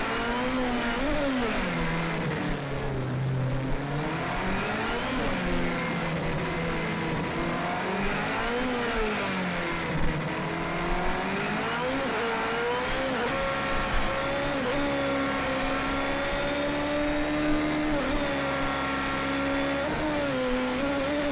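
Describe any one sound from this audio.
A racing car engine screams, rising and falling in pitch as it revs and shifts gears.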